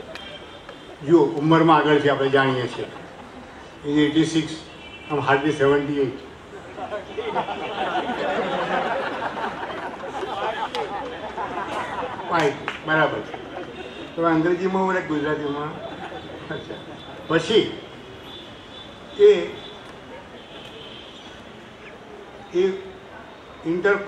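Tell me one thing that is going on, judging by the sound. An elderly man speaks slowly and with pauses into a microphone, heard through a loudspeaker outdoors.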